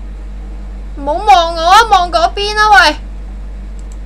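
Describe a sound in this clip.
A young woman exclaims loudly in a high, wavering voice.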